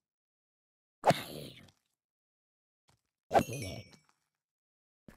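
A game zombie groans as a sword strikes it.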